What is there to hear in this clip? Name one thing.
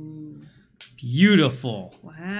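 A man speaks briefly, close to a microphone.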